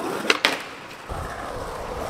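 Skateboard wheels roll and clatter over pavement.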